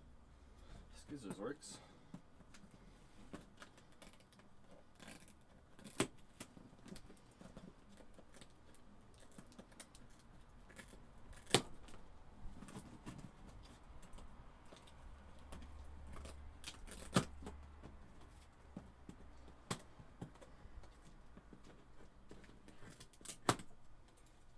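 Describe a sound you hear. Objects knock and click sharply on a table now and then.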